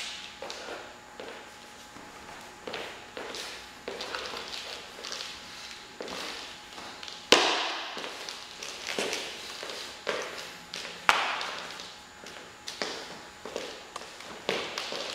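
Feet stamp and shuffle on a wooden floor in an echoing room.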